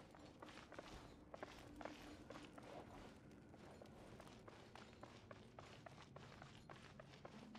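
Quick footsteps run across a stone floor.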